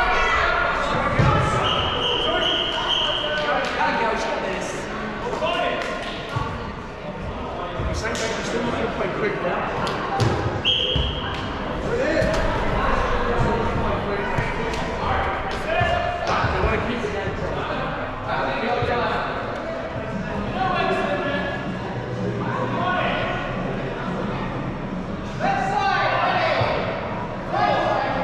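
Balls thud and bounce on the floor.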